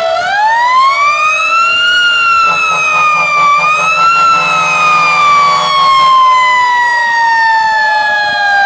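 A fire truck engine rumbles as it drives slowly.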